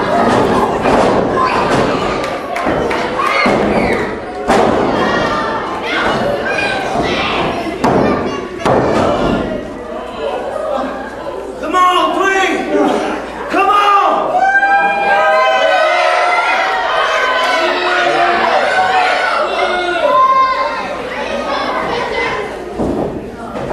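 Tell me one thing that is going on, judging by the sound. A crowd of spectators cheers and shouts in an echoing hall.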